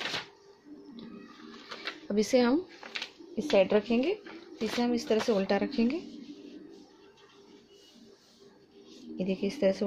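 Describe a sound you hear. Stiff paper rustles as it is handled.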